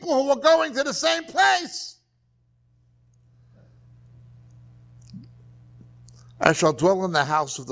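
A middle-aged man speaks calmly through a lapel microphone.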